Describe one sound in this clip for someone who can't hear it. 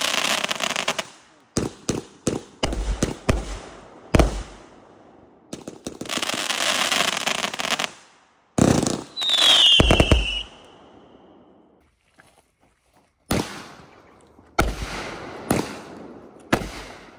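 Fireworks burst with loud booming bangs outdoors.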